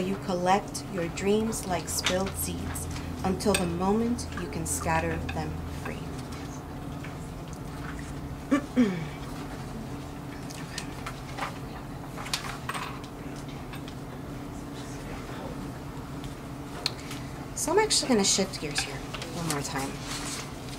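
A woman speaks into a microphone, reading out calmly.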